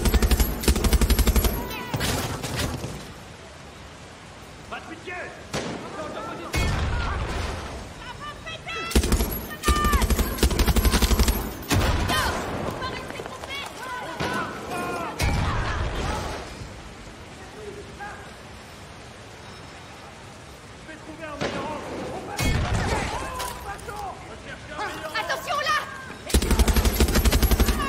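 A mounted machine gun fires in rapid, heavy bursts.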